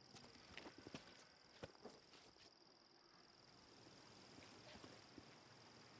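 Footsteps fall on a path outdoors.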